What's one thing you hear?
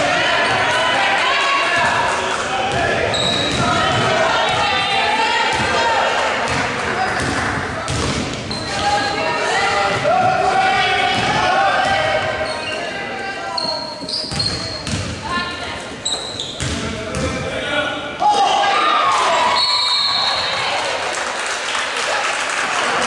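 A crowd of spectators chatters and shouts in an echoing gym.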